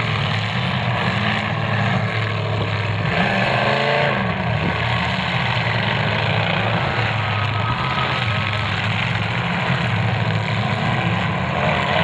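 Car engines roar loudly.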